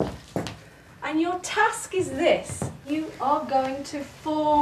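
A woman speaks warmly and cheerfully nearby.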